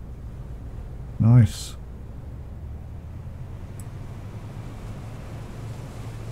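A boat engine rumbles low and steadily.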